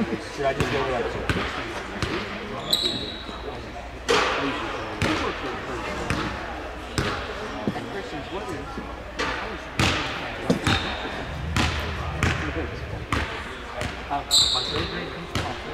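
A basketball bounces on a wooden court, echoing in a large hall.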